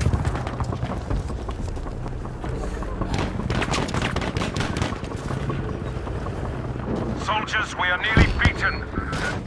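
Rapid gunshots crack in bursts.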